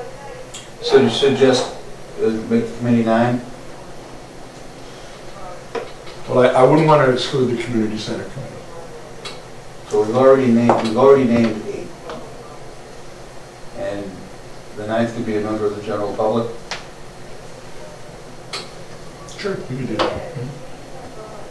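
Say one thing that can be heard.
A man speaks calmly into a microphone, with pauses.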